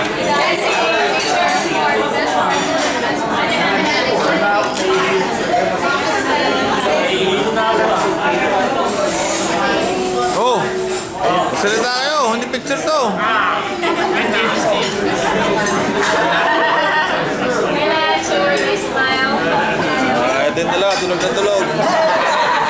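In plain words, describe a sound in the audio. A crowd of men and women chatter loudly close by.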